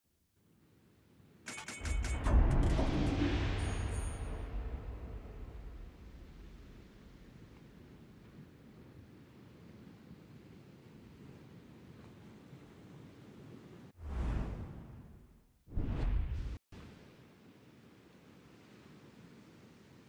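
Waves wash softly around a large ship.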